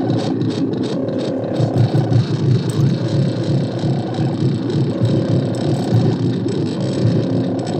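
A large fire roars and crackles nearby.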